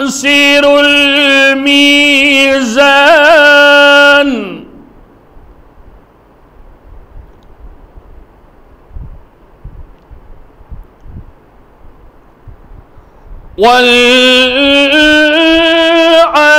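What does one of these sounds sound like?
A man chants in a long, drawn-out voice through a microphone, pausing between lines.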